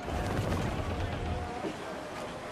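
Cannon fire booms and rumbles heavily.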